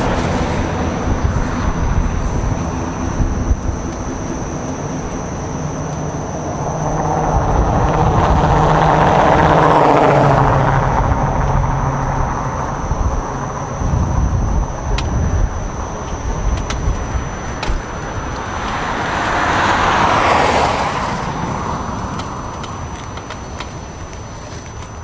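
An electric unicycle's tyre rolls steadily over rough pavement.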